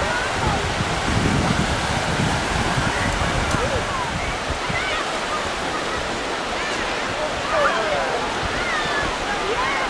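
Wind blows across the microphone in gusts.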